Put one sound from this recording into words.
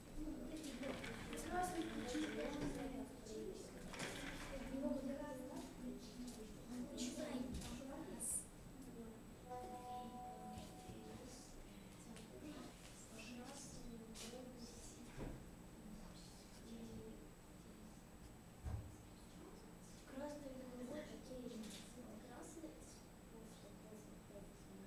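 Children talk and chatter nearby in a room.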